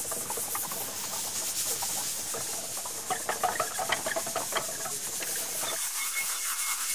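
A hand prayer wheel whirs and clicks softly as it spins.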